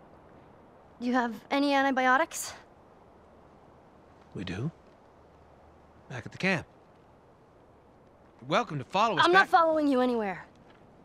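A young girl speaks tensely, close by.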